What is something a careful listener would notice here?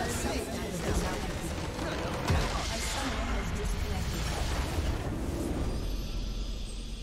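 Game spell effects crash and explode in a battle.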